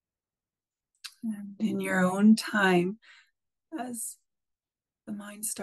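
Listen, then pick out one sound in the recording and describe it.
A middle-aged woman speaks calmly and softly over an online call.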